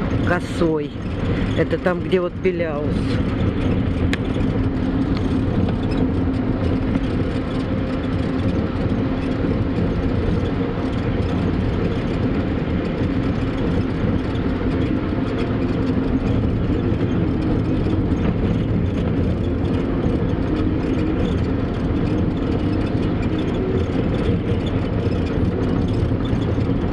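Wind buffets and rumbles loudly and steadily outdoors.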